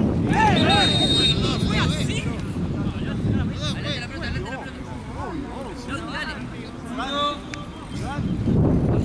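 Young men shout to each other across an open outdoor field.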